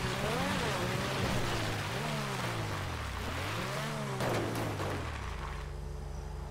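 Tyres crunch over gravel and grass.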